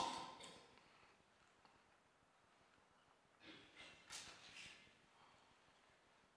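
A man speaks slowly and calmly into a microphone in a reverberant hall.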